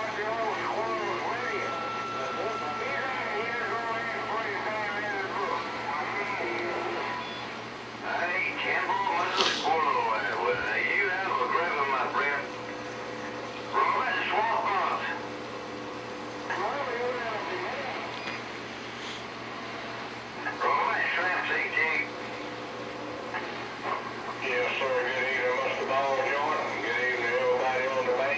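Men's voices talk in turns over a crackly radio loudspeaker.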